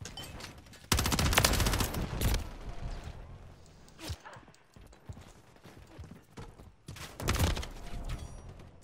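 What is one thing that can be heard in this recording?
Gunfire rattles in loud, rapid bursts.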